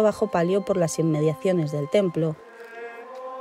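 A man chants loudly and close by in an echoing hall.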